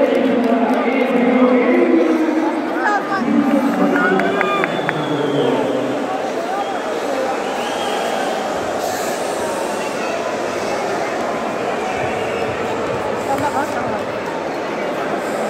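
A large crowd chatters and cheers in an echoing arena.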